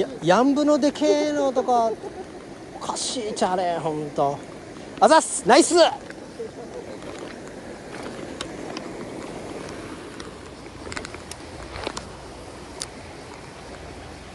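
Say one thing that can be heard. A shallow stream babbles gently over stones.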